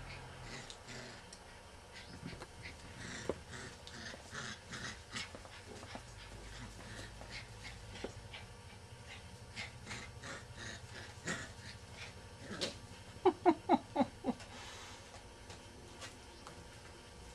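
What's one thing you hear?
Small paws patter and scratch on a hard tile floor.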